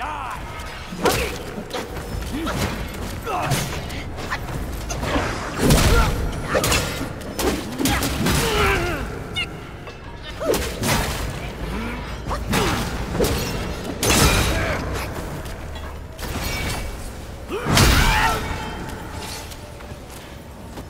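Swords clash and ring with sharp metallic strikes.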